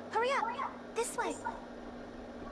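A young girl cries out in short, rising and falling calls.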